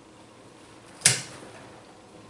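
Wire cutters snip once with a sharp click.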